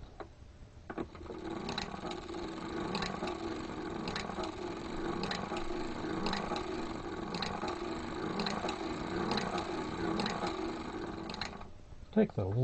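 A hand-cranked knitting machine whirs and clatters with a steady rhythmic clicking.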